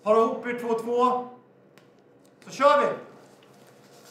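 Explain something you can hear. A young man speaks with animation to a group.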